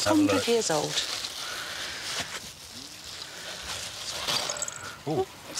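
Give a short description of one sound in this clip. Plastic bubble wrap crinkles as it is unwrapped.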